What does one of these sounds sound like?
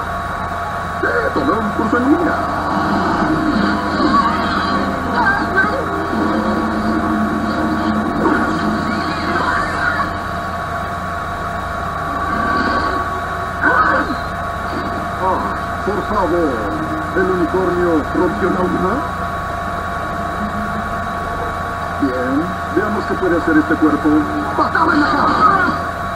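A man speaks with animation in a cartoon voice.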